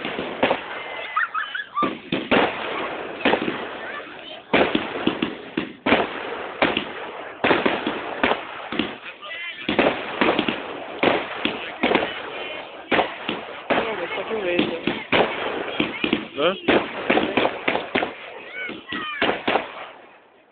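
Firework rockets whistle as they rise.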